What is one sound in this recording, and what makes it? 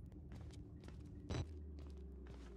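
A heavy door swings shut with a thud.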